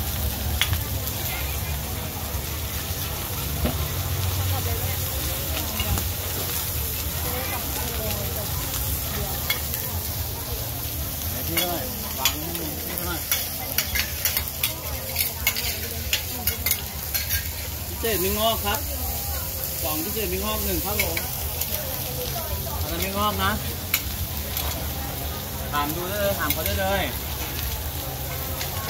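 Oil sizzles and crackles steadily on a hot griddle.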